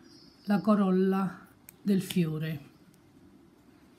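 Scissors snip a thread.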